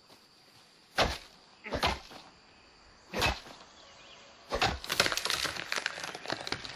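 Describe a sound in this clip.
An axe chops into a tree trunk with sharp thuds.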